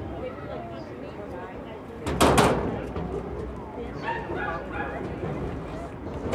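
A woman talks to a group at a distance outdoors.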